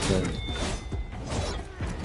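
Fiery blasts whoosh and crackle.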